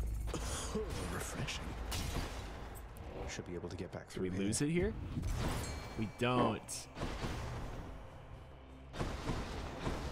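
A magical burst whooshes and shimmers.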